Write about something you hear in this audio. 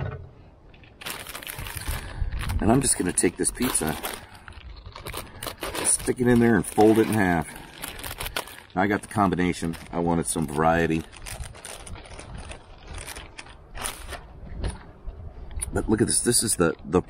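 A plastic bag crinkles and rustles as it is torn open.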